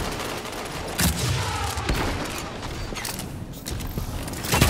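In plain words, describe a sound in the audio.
A rifle fires in sharp bursts.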